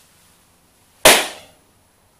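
A man smacks a fist into his palm.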